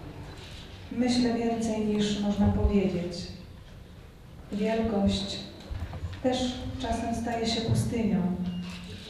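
A woman reads out clearly through a microphone, heard over loudspeakers.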